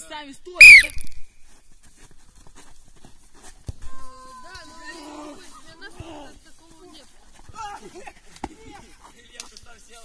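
Teenage boys talk and call out to each other outdoors.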